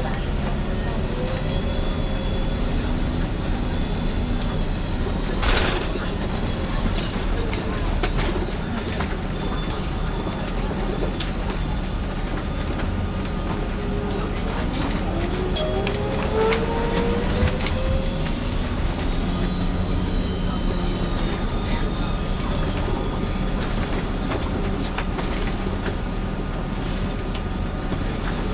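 A bus interior rattles and clicks over the road.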